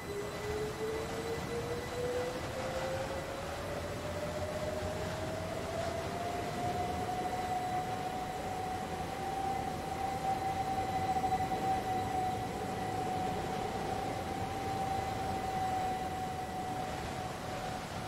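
A train's electric motors whine, rising in pitch and then holding steady.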